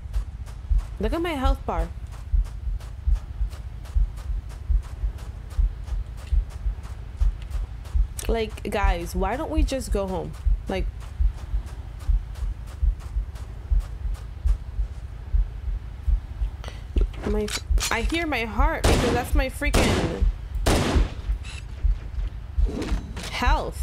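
A young woman talks casually into a close microphone.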